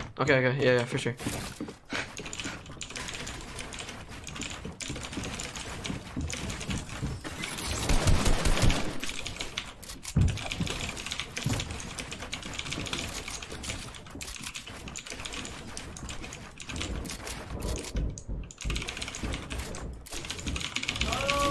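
Wooden walls go up with quick knocking thuds.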